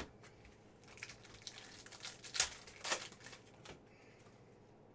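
A foil card pack crinkles and tears open.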